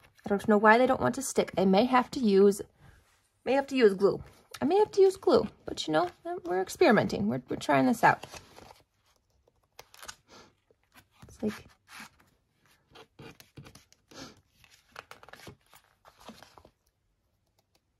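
Tweezers tap lightly on paper.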